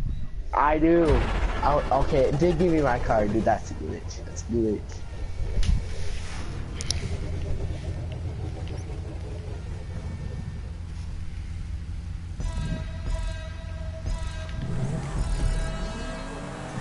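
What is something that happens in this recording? Car engines rumble and rev.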